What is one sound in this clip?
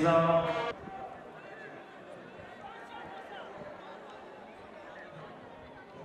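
A large crowd murmurs faintly in a stadium.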